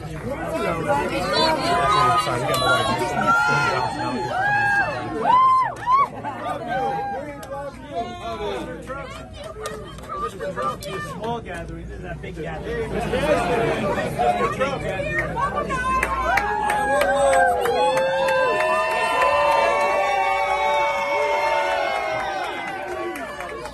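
Crowd members cheer and shout excitedly.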